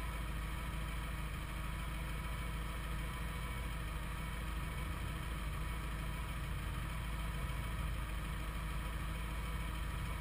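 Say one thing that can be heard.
A car engine hums as the car drives slowly up close.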